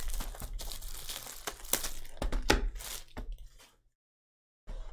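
Plastic wrap crinkles and rustles as it is torn off.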